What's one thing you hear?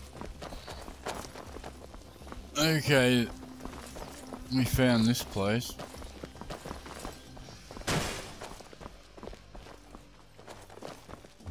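Footsteps scuff slowly on a stone floor.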